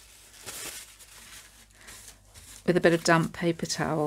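A tissue rubs over a surface.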